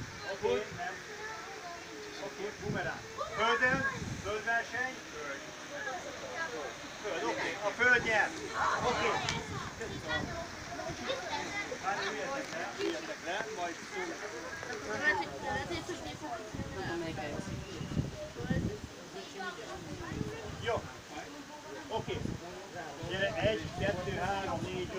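Several children chatter and talk outdoors.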